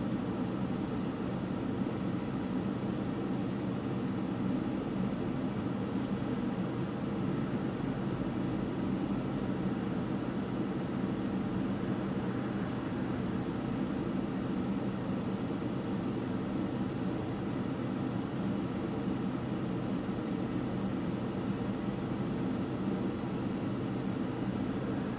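A car engine idles steadily from inside the car.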